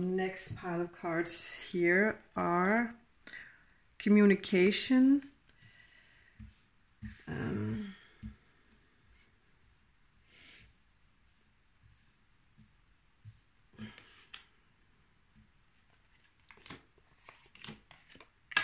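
Cards tap and slide softly on a table.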